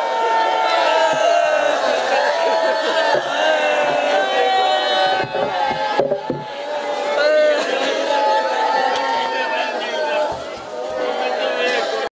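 A crowd of men chants loudly together.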